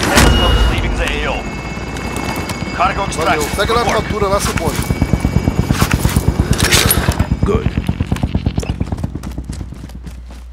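A gun fires in rapid bursts close by.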